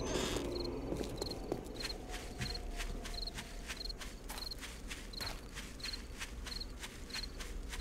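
Footsteps swish steadily through tall grass.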